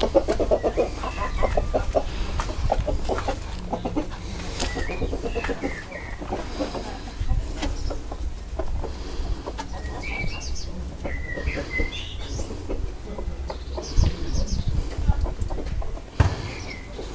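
Chickens cluck softly nearby.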